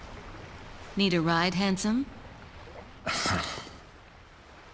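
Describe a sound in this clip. A young woman speaks calmly and close.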